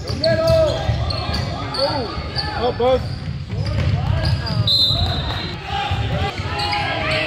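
Spectators talk and call out in an echoing gym.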